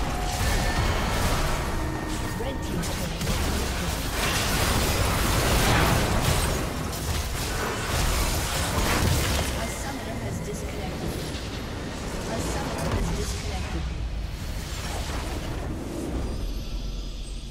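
Video game spell effects and blows crash and explode in a busy fight.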